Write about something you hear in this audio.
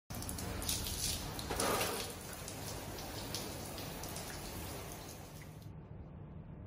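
Water sprays with a soft hiss.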